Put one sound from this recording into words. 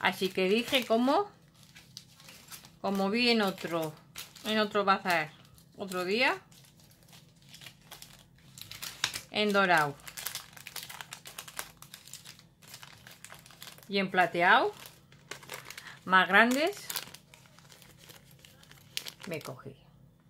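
Plastic packets rustle and crinkle.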